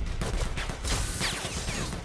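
A spear stabs into a creature with a wet thud.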